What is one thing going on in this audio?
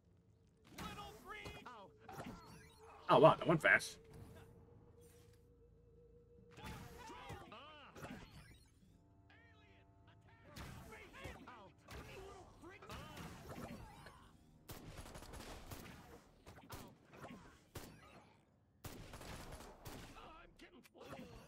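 A laser beam buzzes in short bursts.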